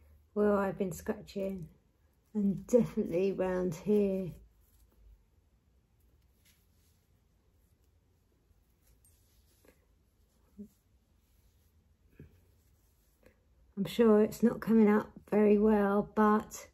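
A woman talks calmly and with animation close to a microphone.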